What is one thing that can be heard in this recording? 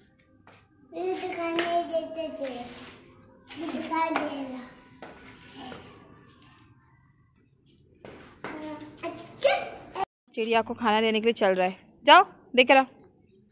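A young child talks in a high voice close by.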